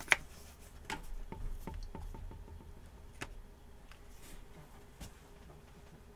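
Trading cards tap and slide on a table.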